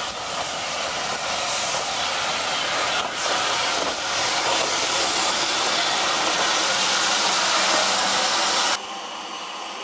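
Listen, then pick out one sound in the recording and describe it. Steam hisses loudly from a locomotive.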